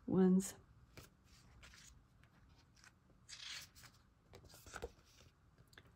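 Paper sheets rustle as they are handled.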